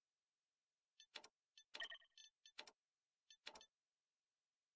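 Short electronic menu clicks sound as a game's settings window opens and closes.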